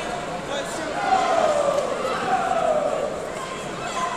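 A man calls out loudly in an echoing hall.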